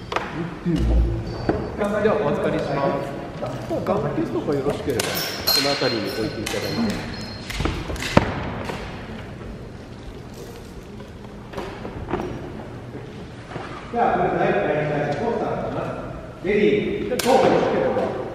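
A man talks nearby in an echoing hall.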